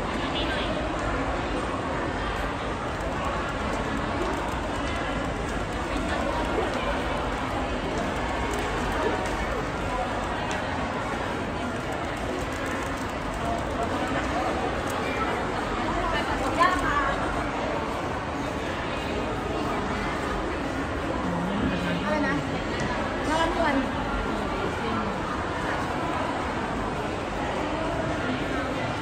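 A crowd murmurs in the background of an echoing indoor space.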